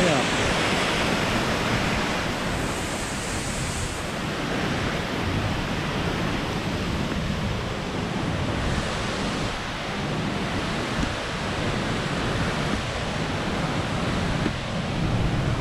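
Wind buffets loudly and steadily outdoors.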